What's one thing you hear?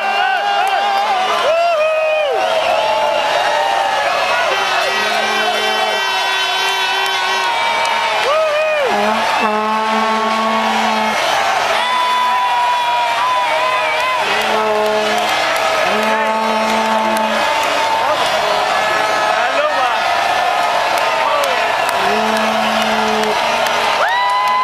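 A large crowd sings loudly outdoors.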